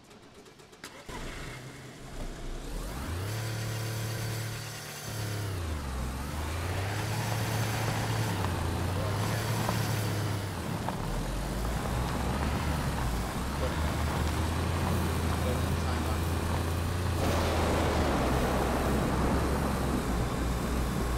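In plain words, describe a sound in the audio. A car engine starts and revs up and down.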